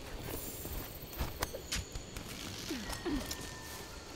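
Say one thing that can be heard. Leaves and plants rustle as someone pushes through dense foliage.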